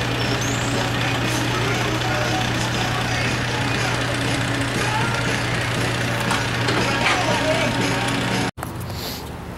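A fire engine idles with a steady low hum.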